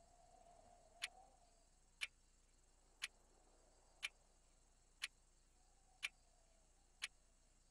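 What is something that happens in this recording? A countdown timer beeps sharply once every second.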